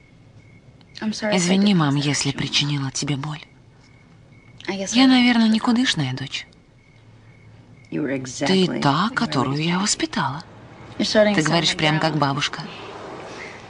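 A second young woman answers softly close by.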